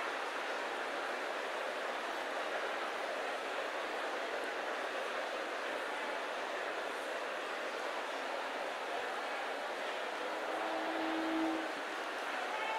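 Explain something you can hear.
A large crowd prays aloud together in a big echoing hall.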